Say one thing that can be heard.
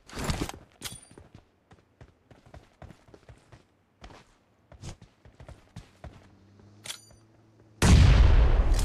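Footsteps patter on the ground.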